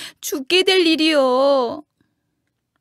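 A man sings a long, wavering, mournful note up close.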